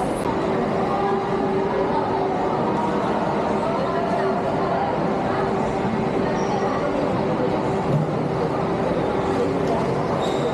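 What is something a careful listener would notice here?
Many people chatter in a large, echoing hall.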